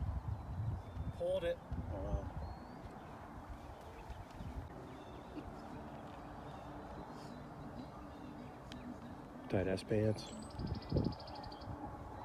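A man talks outdoors at a distance.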